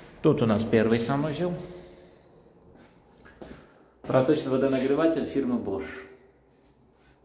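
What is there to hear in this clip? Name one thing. A man speaks calmly close by, in a small echoing room.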